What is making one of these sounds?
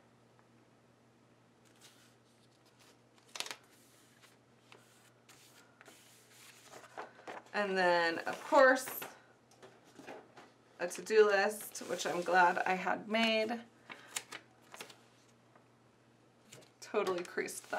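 Paper pages rustle and flip close by.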